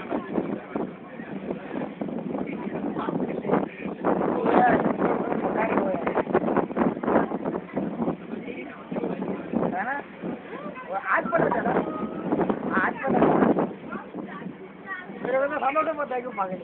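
Water splashes against the hull of a moving boat.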